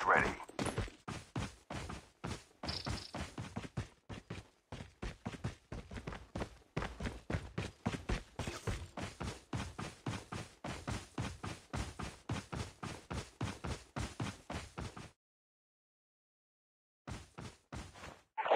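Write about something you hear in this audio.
Footsteps run quickly and steadily over grass and dirt.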